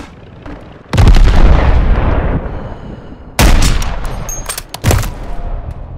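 A sniper rifle fires loud, sharp shots that echo briefly.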